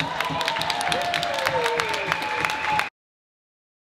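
Plastic sticks clack against a ball on a hard floor.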